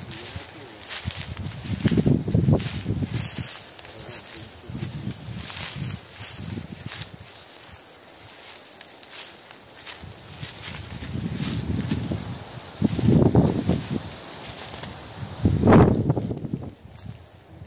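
Footsteps crunch through dry leaves and grass.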